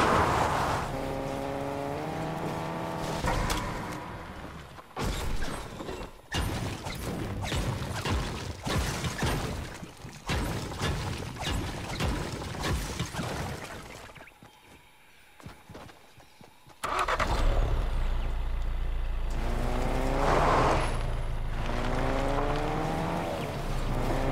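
A car engine revs up and down through the gears.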